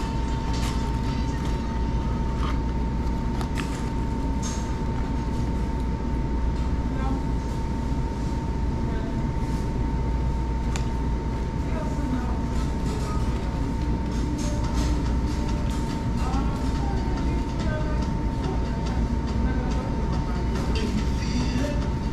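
Paper wrappers rustle and crinkle.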